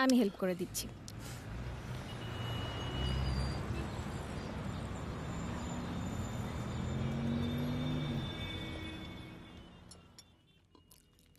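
A city hums with distant traffic at night.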